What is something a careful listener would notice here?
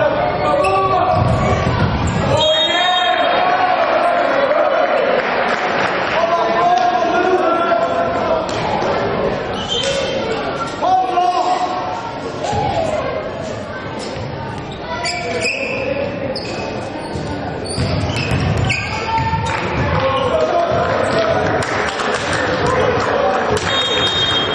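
A volleyball is struck by hands.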